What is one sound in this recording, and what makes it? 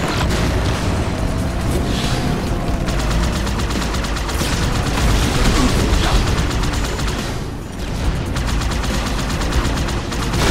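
A hovering vehicle's engine hums steadily.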